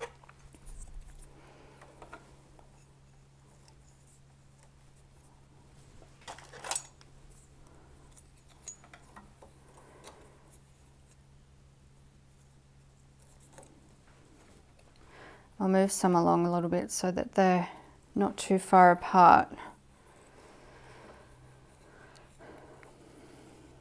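Metal needles click softly under fingers.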